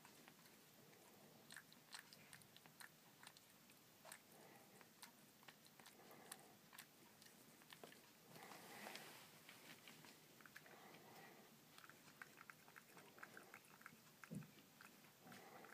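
A cat crunches dry food close by.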